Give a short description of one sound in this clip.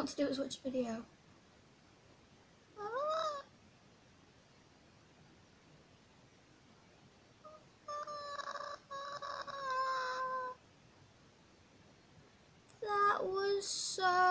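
A young girl talks and exclaims with animation close to a microphone.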